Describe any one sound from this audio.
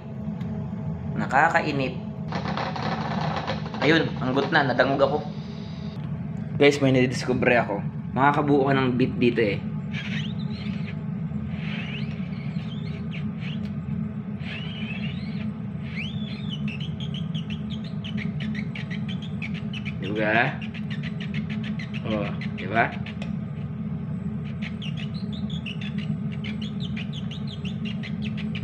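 Food bubbles and simmers in a covered pot.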